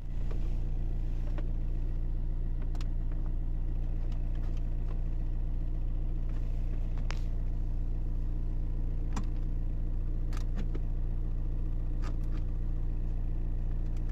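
Buttons click sharply on a car radio.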